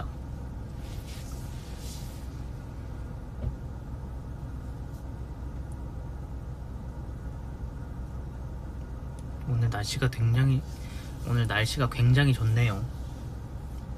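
A car engine hums low and steady inside the car.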